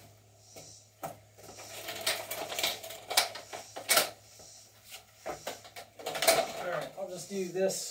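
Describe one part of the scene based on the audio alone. Plastic strips clatter and rattle against each other.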